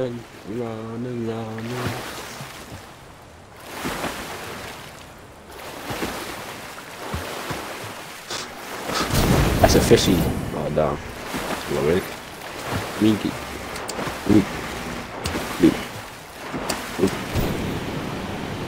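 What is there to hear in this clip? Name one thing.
Water splashes softly as a swimmer paddles along.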